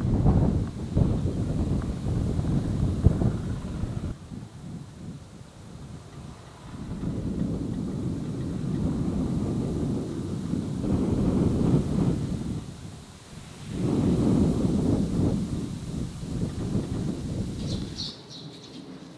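Wind gusts roar across open ground.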